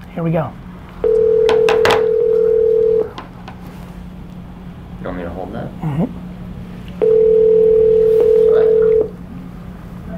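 A phone's ringing tone sounds steadily through its speaker.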